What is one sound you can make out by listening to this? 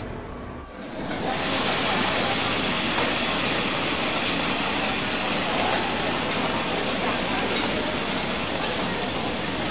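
Gas burners roar under the woks.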